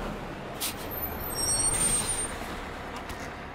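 Bus brakes hiss.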